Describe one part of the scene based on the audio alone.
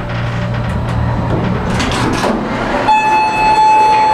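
Elevator doors slide open.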